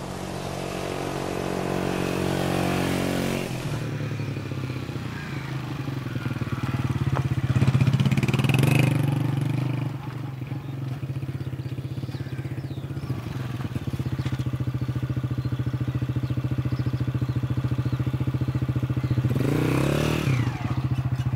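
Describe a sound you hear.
A motorcycle engine hums steadily as it rides along.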